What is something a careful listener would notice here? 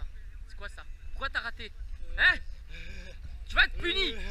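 A young man laughs and talks excitedly close to the microphone.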